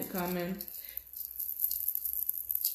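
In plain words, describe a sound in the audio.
Plastic wrap crinkles in hands.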